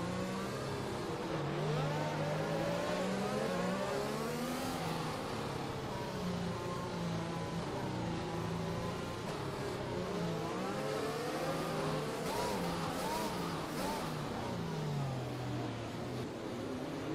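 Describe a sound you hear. A racing car engine hums and revs, shifting pitch as it changes gear.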